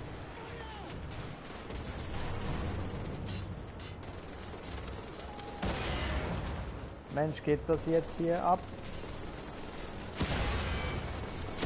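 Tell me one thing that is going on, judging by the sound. Automatic gunfire rattles in bursts.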